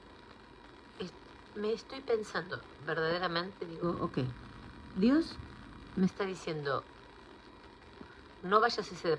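A woman speaks close to a phone microphone, calmly and expressively.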